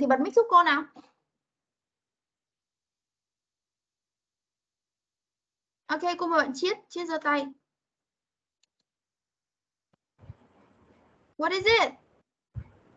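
A young woman speaks clearly in short phrases over an online call.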